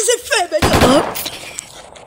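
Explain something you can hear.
A gunshot bangs loudly.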